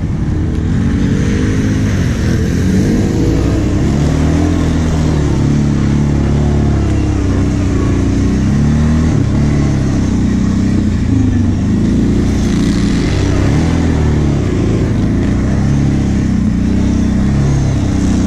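A quad bike engine revs up and down, riding over bumpy dirt tracks.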